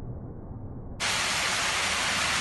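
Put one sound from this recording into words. A waterfall splashes down steadily.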